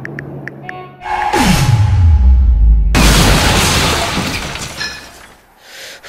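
Glass cracks and shatters loudly.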